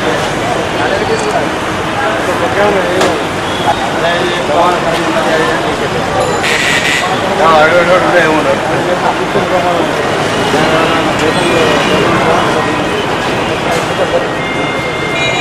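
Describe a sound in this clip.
Street traffic hums steadily in the background.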